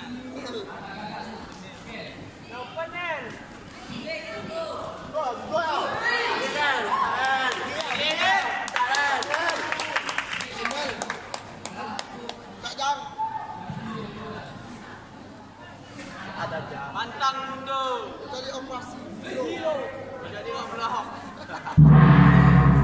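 Spectators shout and cheer with excitement in a large echoing hall.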